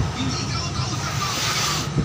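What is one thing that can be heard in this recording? An abrasive stone rubs along a granite edge.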